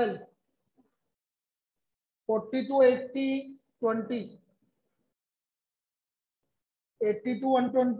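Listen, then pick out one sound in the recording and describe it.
A man speaks calmly nearby, in short phrases with pauses.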